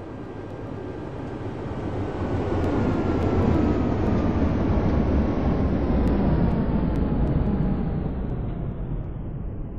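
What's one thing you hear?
A tram rumbles past close by, swelling loudly and then fading.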